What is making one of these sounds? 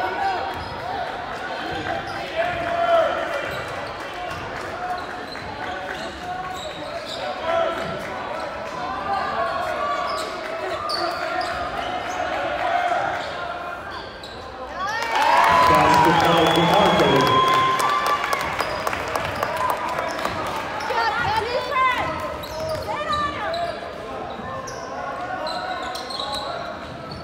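A crowd of spectators chatters throughout a large echoing gym.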